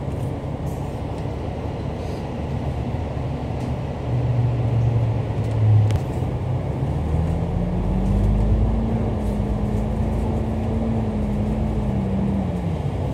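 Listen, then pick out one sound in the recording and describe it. City traffic hums in the background.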